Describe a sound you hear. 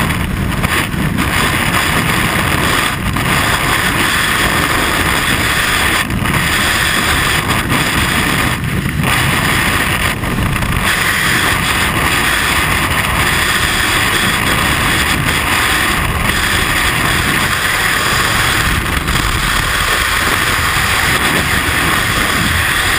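Rushing wind roars past in free fall, buffeting a helmet-mounted microphone.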